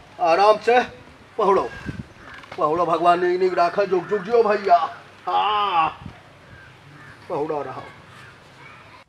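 A middle-aged man speaks loudly and with animation, close by.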